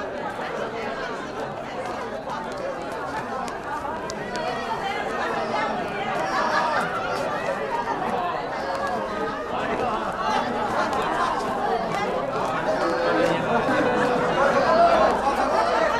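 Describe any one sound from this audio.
A crowd of men and women chatter outdoors, growing louder.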